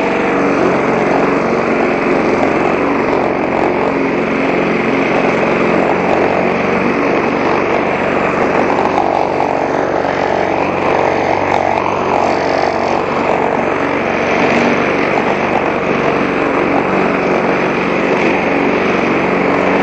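A petrol lawn mower engine drones loudly and steadily close by.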